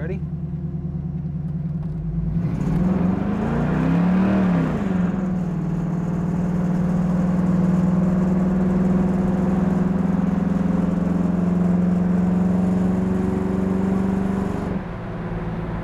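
A car engine roars loudly, revving up and then holding a steady drone.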